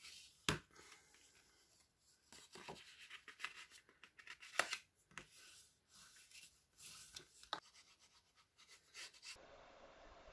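Stiff paper rustles and crinkles as it is folded.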